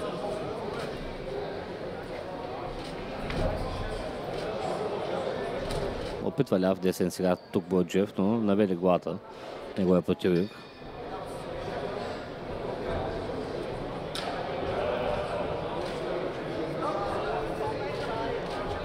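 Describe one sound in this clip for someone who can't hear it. A crowd murmurs and chatters in a large hall.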